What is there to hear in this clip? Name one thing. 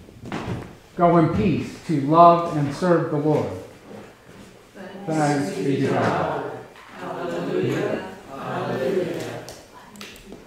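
An elderly man speaks calmly and slowly, close by.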